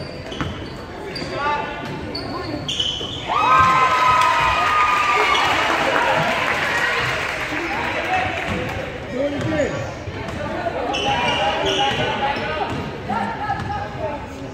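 A basketball bounces on a wooden floor.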